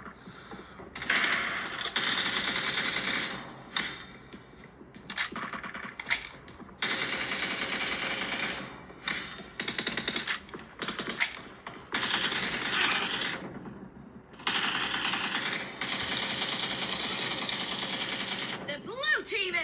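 Rapid gunfire from a mobile game plays through a small phone speaker in bursts.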